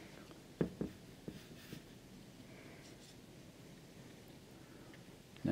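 A paintbrush dabs and brushes across watercolour paper.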